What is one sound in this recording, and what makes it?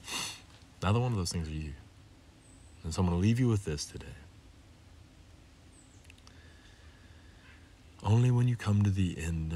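A man speaks calmly and close by, with pauses between phrases.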